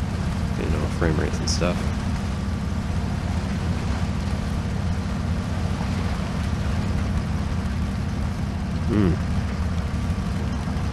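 A heavy truck engine rumbles and strains steadily.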